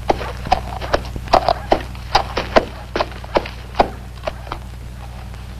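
Hooves clop on the ground as a horse is led.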